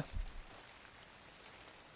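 Leaves rustle as a bush is picked by hand.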